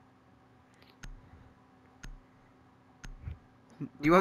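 A game countdown timer ticks once each second.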